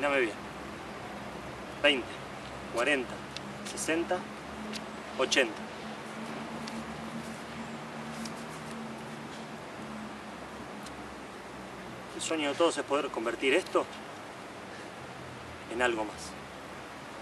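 A young man speaks in short bursts close by.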